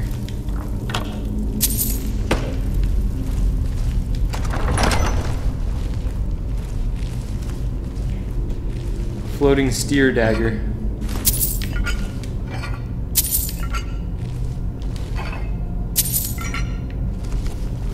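Coins jingle briefly as they are picked up.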